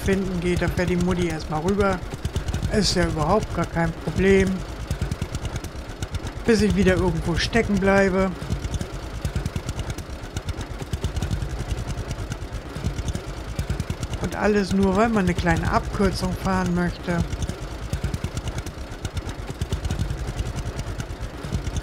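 A tractor engine chugs steadily at low speed.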